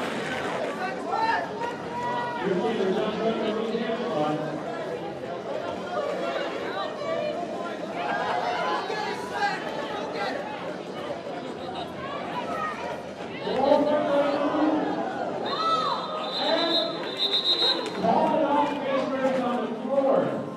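A crowd of women and men chatter and call out loudly nearby.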